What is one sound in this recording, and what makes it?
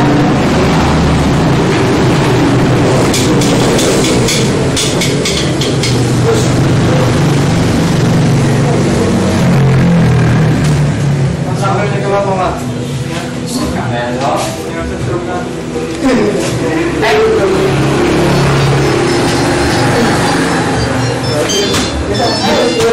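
Several young men talk nearby.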